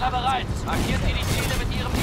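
An explosion booms in the distance.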